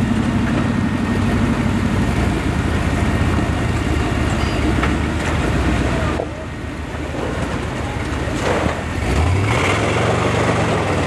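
Tyres grind and scrape over rock.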